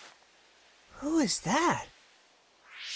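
A young boy calls out a question, startled.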